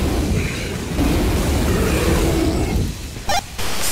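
A flamethrower roars with a loud rushing hiss.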